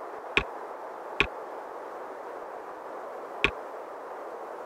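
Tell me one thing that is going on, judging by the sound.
Interface buttons click sharply a few times.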